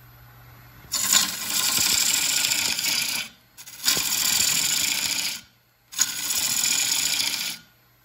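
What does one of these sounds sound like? A lathe gouge cuts into spinning wood with a loud rushing scrape, in bursts.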